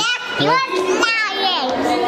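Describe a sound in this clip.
A young girl laughs loudly close by.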